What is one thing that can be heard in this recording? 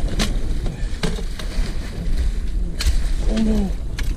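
A landing net splashes into the water.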